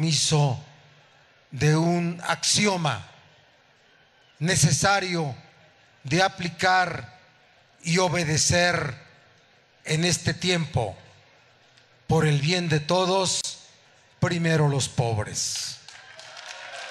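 A man speaks loudly and with emphasis into a microphone over loudspeakers, outdoors.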